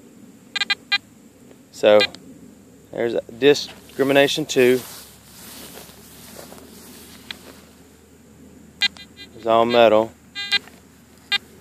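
A metal detector beeps briefly as its buttons are pressed.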